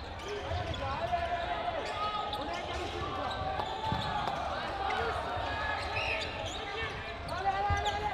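A crowd of players and spectators shouts and chatters in a large echoing hall.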